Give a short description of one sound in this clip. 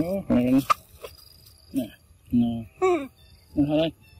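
A monkey bites into and chews a piece of fruit.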